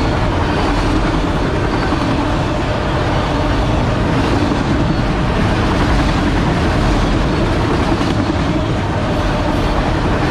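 A long freight train rumbles steadily past at close range.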